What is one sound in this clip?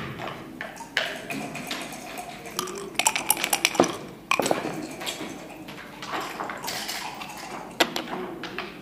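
Game pieces click as they are moved on a wooden board.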